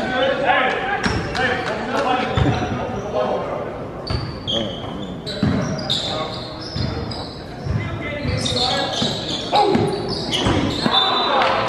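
A basketball thuds as it bounces on the floor.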